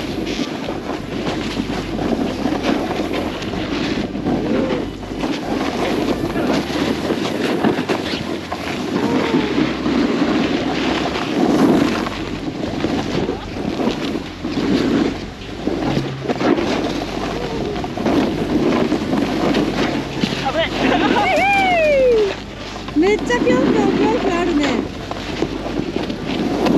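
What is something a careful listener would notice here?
A snowboard scrapes and hisses over packed snow.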